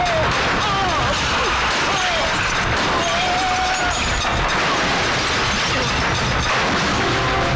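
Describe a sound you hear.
A car tumbles and crashes over a dirt road.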